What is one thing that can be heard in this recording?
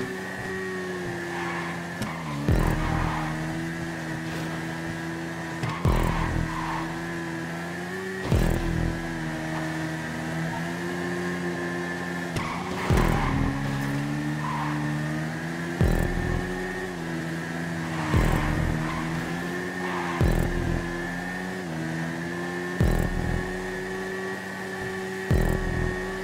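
A motorcycle engine roars at high revs, dropping briefly with each gear change.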